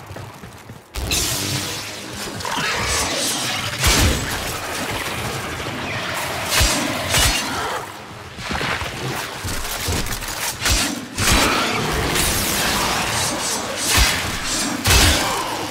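Sharp impacts and explosions thud heavily.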